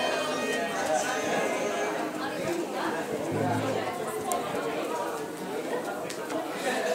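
A group of men and women talk quietly together in a large echoing hall.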